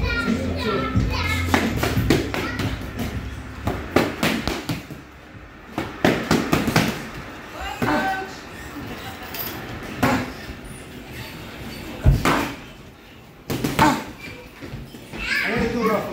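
Boxing gloves smack against punch mitts in quick bursts.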